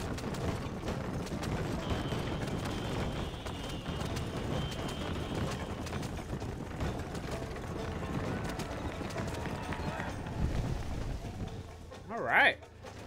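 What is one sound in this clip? A horse-drawn wagon rumbles and rattles over a dirt road.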